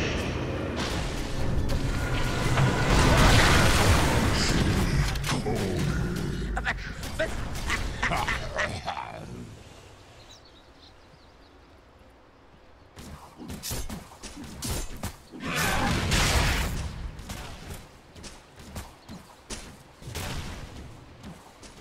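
Spell blasts and clashing blows ring out in a loud game battle.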